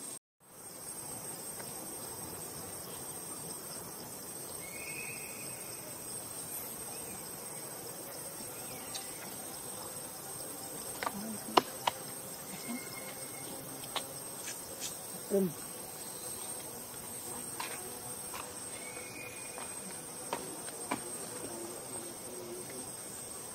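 Monkeys crunch and chew food close by.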